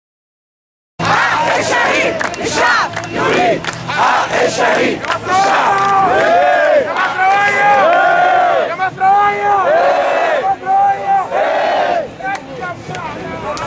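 A large crowd chants loudly together outdoors.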